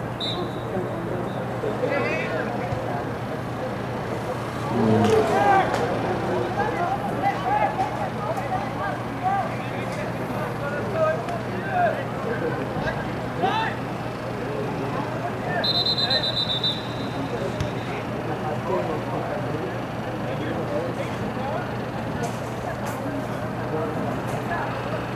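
Young men shout and call out to each other outdoors on an open field.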